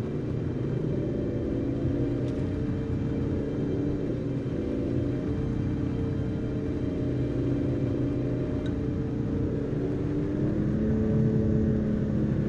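A car engine hums steadily while driving on a rough gravel road.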